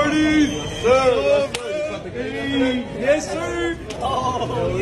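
A young man shouts a greeting with excitement.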